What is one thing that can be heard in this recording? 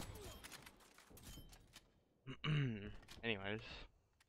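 A rifle clicks and clacks as it is reloaded.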